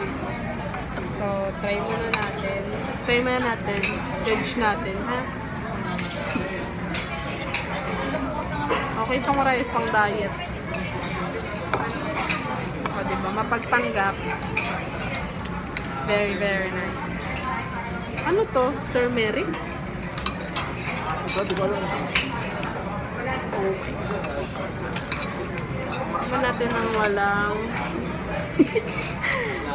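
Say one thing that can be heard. Forks and spoons clink against plates.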